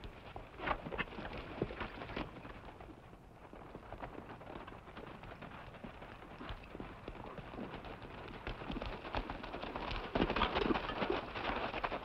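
Horses' hooves gallop over dry ground, drawing closer.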